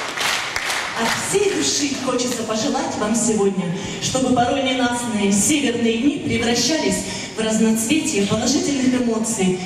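A woman speaks clearly through a microphone and loudspeakers in a large hall.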